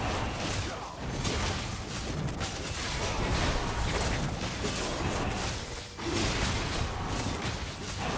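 Game battle effects clash, whoosh and burst rapidly.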